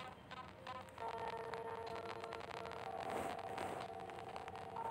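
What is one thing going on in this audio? Light electronic music plays softly.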